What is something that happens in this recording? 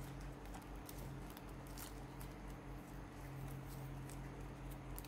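Plastic ribbon rustles and crinkles softly as it is folded.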